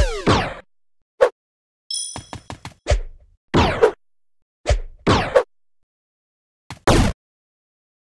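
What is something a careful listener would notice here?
Short electronic game sound effects swoosh and chime in quick bursts.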